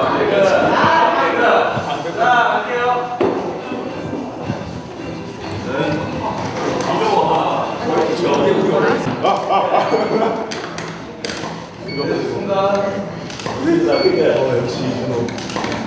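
Several young men laugh loudly nearby.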